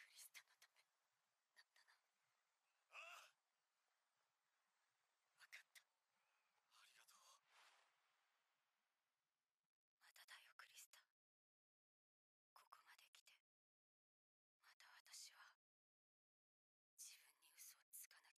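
A young woman speaks quietly into a close microphone.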